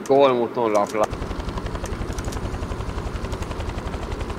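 A helicopter's rotor thumps rapidly and steadily.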